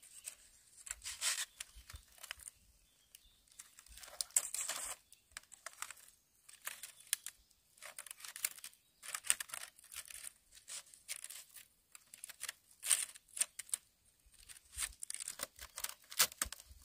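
Dry bamboo strips rustle and clatter as they are woven into a mat.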